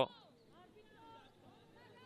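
A football is kicked with a dull thud on grass.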